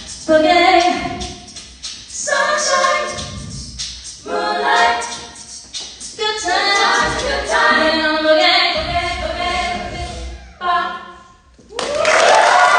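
A young woman sings into a microphone in a strong, clear voice.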